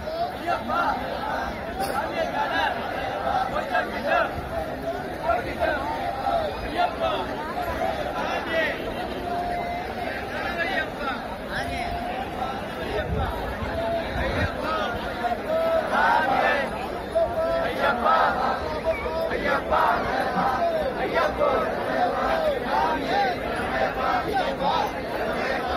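A large crowd of men shouts and chants outdoors.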